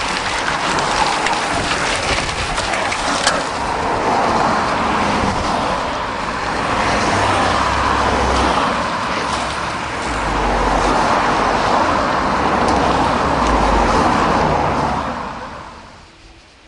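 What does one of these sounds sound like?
Car engines hum as vehicles drive slowly past.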